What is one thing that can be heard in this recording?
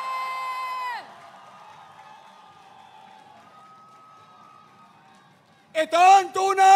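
A large crowd cheers.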